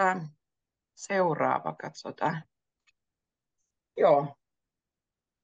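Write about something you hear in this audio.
A young woman speaks calmly and clearly, heard through an online call.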